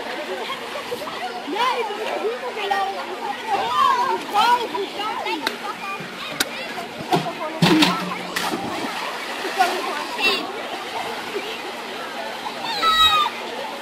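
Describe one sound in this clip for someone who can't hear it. Young people shout and chatter excitedly outdoors.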